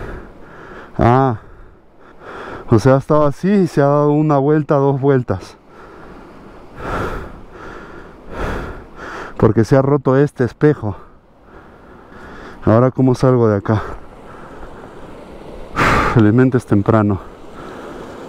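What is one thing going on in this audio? A man talks close to a helmet microphone.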